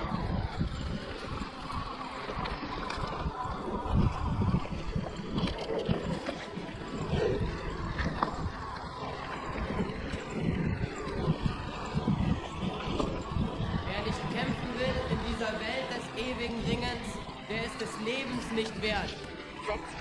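Tall grass and plants brush against a passing bicycle.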